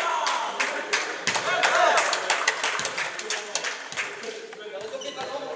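Young men shout and cheer in a large echoing hall.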